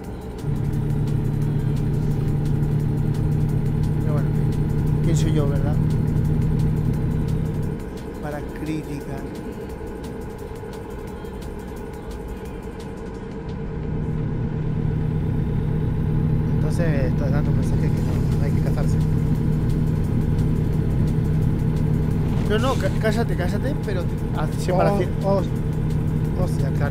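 A truck engine drones steadily, easing off for a while before pulling strongly again.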